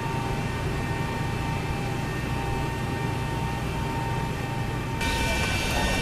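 A cockpit air system hums steadily.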